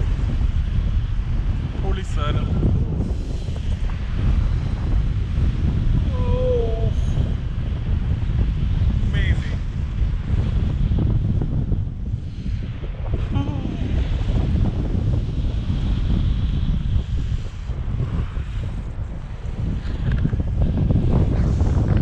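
Strong wind rushes and buffets past the microphone throughout.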